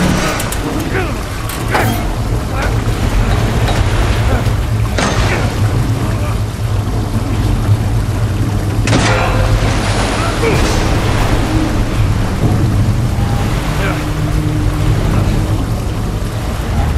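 Water rushes and churns steadily.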